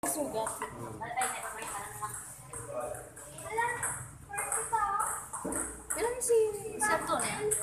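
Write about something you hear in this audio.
A table tennis ball clicks back and forth on paddles and the table.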